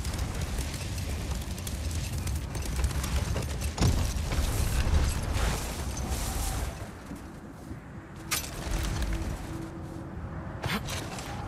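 Wind blows steadily across open snow.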